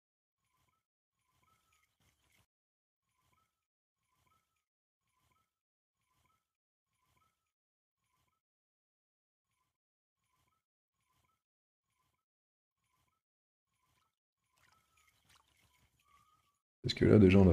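A fishing reel ticks softly and steadily as line is wound in.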